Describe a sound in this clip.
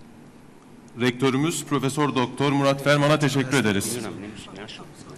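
A man speaks calmly through a microphone at a podium.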